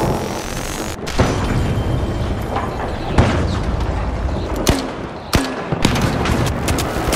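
Gunshots crack and bang in sharp bursts.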